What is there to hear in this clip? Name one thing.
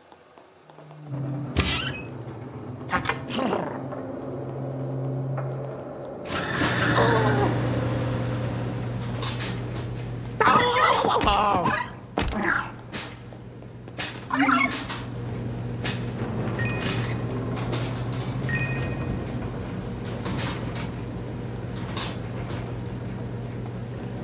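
Washing machines hum steadily.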